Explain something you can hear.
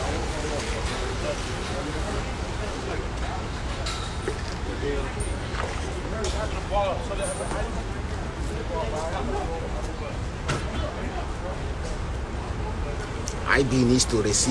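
Traffic rumbles steadily on a city street outdoors.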